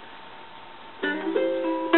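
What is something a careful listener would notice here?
A ukulele is strummed close by.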